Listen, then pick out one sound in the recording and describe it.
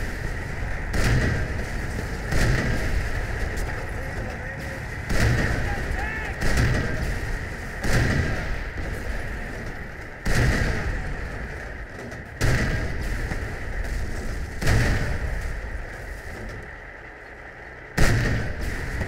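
Shells explode with heavy rumbling booms.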